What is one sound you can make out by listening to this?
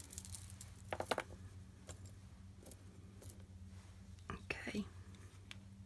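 Small metal charms and beads clink softly as they are handled.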